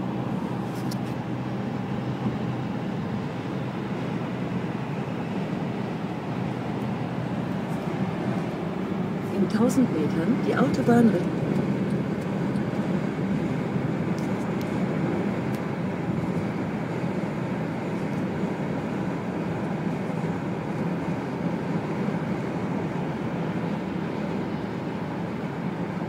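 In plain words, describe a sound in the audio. Tyres roar steadily on the road from inside a moving car.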